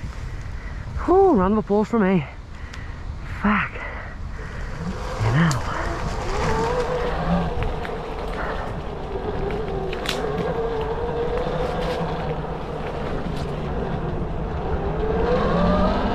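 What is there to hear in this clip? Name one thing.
Tyres roll over leaves and dirt.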